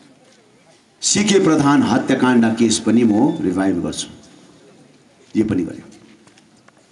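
A man speaks loudly and forcefully into a microphone over loudspeakers, outdoors.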